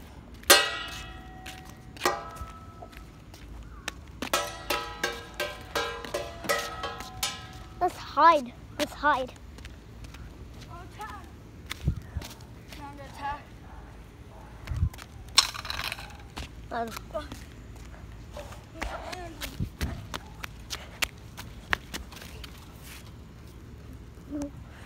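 Sandals slap and scuff on pavement.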